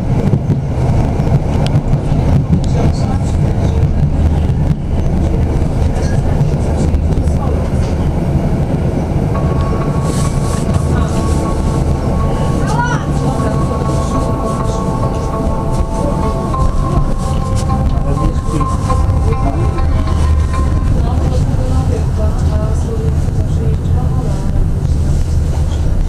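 An electric tram rumbles along on steel rails.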